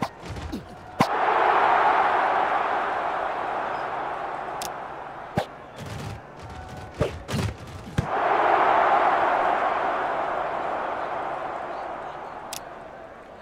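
A crowd cheers loudly, then slowly fades.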